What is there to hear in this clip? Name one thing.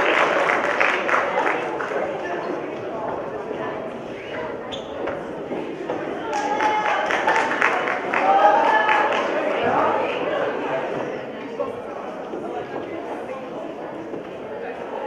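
A young woman speaks into a microphone over a loudspeaker in a large hall.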